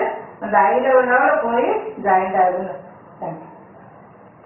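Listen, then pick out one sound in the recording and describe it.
A woman speaks calmly and clearly into a nearby microphone, explaining.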